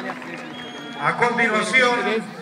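A young man talks loudly close by.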